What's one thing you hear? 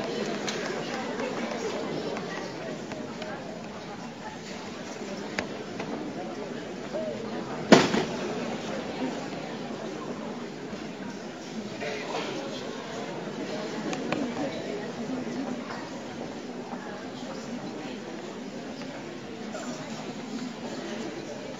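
Young men and women murmur and chatter in a large echoing hall.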